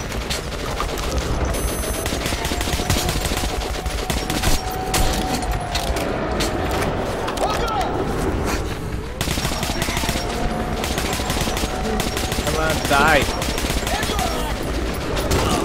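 A gun fires bursts of rapid shots.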